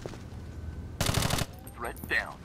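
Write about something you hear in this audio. A silenced rifle fires a quick burst.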